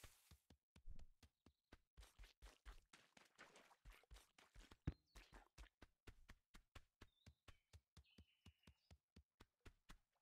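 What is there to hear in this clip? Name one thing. A goose's feet patter quickly and steadily along the ground.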